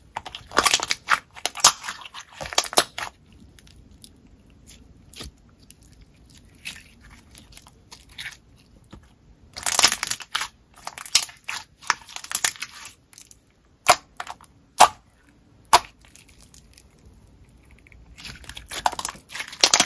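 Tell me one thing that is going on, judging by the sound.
Sticky slime squelches and crackles as hands squeeze and stretch it.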